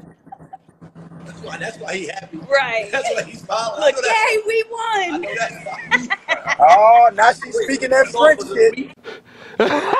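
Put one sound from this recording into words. A young woman talks and laughs over an online call.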